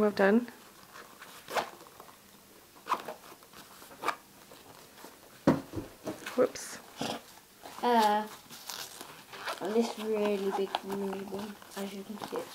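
Fabric rustles and knocks as a case is handled.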